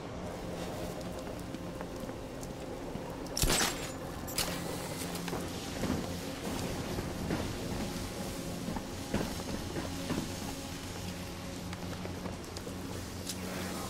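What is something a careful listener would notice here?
Footsteps tread on wooden boards.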